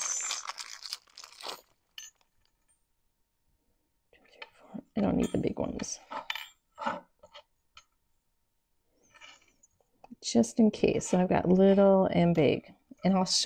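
Small craft pieces rustle and click on a tray.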